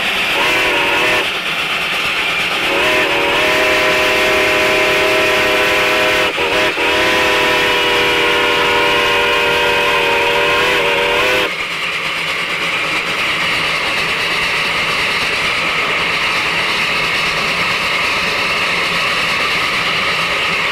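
A steam locomotive rolls past close by, its wheels clanking on the rails.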